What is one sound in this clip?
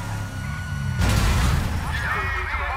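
A car crashes into a truck with a loud bang.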